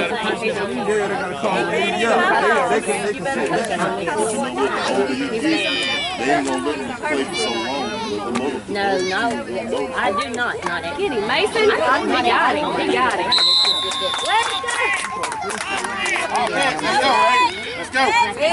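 Adults and children cheer and shout outdoors.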